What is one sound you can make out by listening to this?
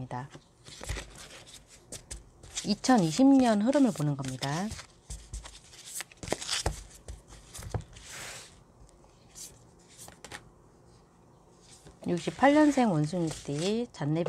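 Playing cards riffle and slap as they are shuffled.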